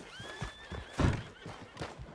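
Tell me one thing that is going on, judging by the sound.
A wooden barn door knocks as it swings open.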